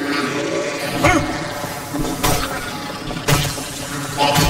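Heavy blows thud into flesh.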